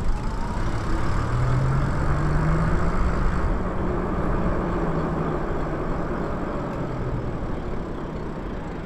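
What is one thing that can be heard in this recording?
An electric bike motor hums, rising and falling with speed.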